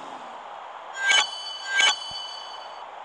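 Bright electronic chimes ring twice.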